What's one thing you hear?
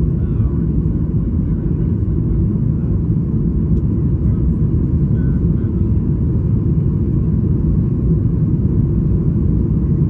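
Jet engines roar steadily in a low, constant rumble.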